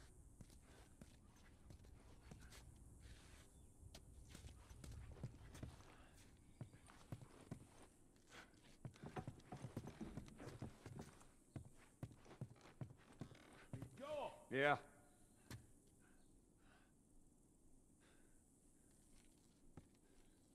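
Footsteps thud slowly across a wooden floor.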